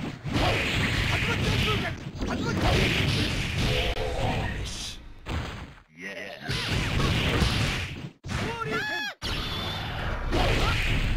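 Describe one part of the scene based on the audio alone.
Punches and kicks land with sharp, heavy impacts.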